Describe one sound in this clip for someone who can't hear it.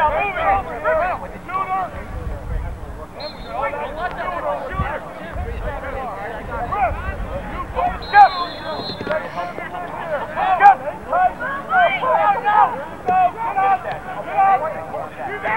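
A crowd of young men shouts and cheers outdoors.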